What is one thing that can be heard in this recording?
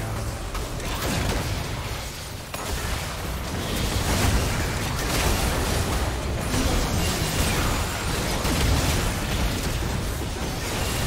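Game spells and blasts crackle and boom in a busy battle.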